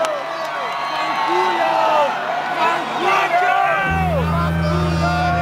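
A large crowd cheers, screams and whistles loudly.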